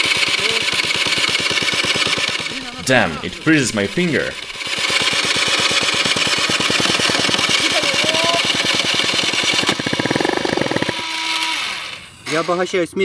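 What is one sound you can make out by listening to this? A small engine idles with a rapid, steady putter.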